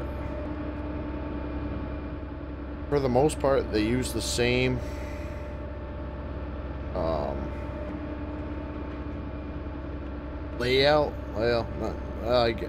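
A heavy machine's engine hums steadily.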